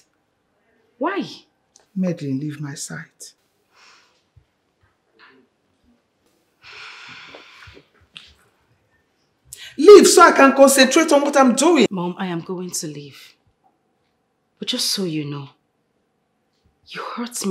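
A woman speaks with irritation, close by.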